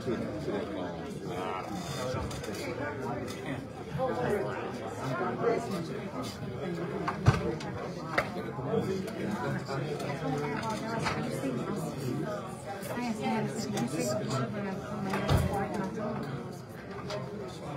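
Many men and women talk at once in an echoing room.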